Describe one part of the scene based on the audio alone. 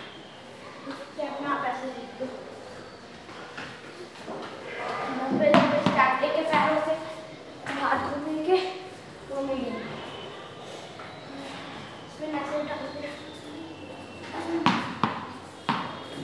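A young man talks in an echoing room.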